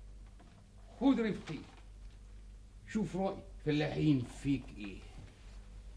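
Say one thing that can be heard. A younger man speaks calmly, close by.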